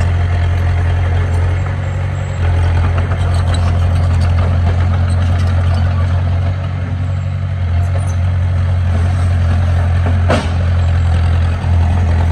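A small bulldozer's diesel engine rumbles steadily nearby.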